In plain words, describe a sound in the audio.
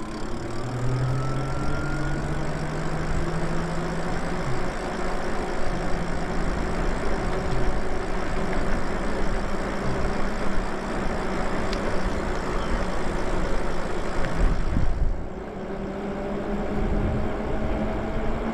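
An electric motorbike's motor whines, rising and falling in pitch as it rides.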